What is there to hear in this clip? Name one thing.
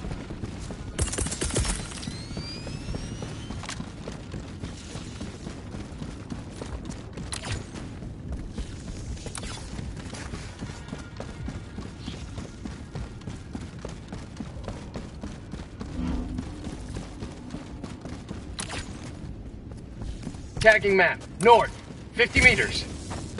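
Heavy footsteps crunch quickly over rough ground.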